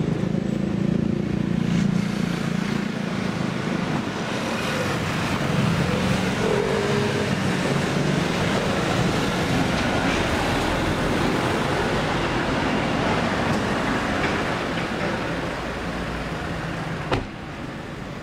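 Traffic rumbles past on a city street.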